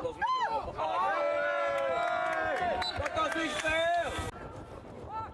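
A small crowd of men cheers and shouts outdoors.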